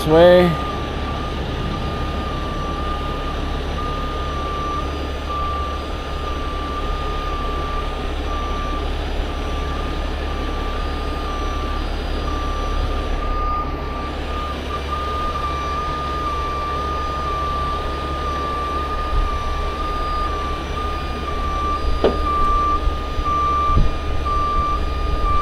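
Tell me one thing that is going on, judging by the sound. A diesel engine hums steadily nearby.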